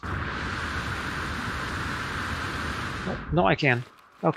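Water rushes and gurgles all around, as if heard underwater.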